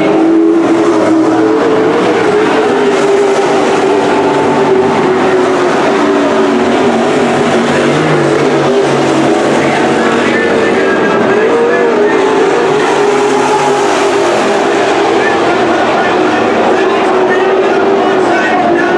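Car engines whine and rise in pitch as the cars accelerate.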